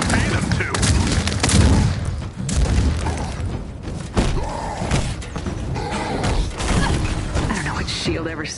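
Heavy punches thud and crash in a fight.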